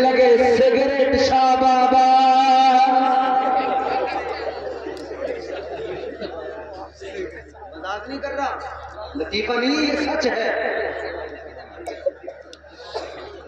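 A man chants in a long melodic voice through a microphone and loudspeakers, echoing in a large space.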